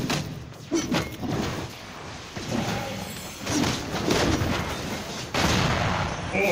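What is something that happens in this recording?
Magic blasts and clashing strikes burst out in a fast fight.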